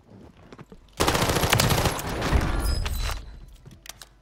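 A rifle fires rapid bursts, loud and close.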